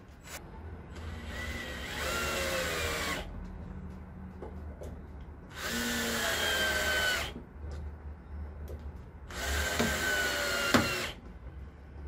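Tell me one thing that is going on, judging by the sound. A cordless drill whirs in bursts, driving screws into wood.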